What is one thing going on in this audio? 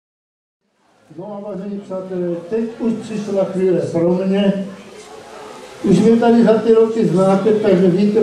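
An elderly man speaks into a microphone over loudspeakers.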